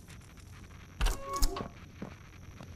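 A heavy metal door clanks open.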